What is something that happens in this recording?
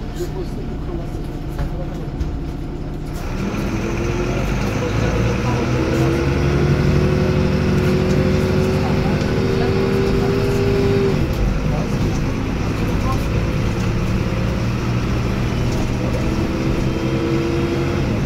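A bus rattles and rumbles as it rolls along.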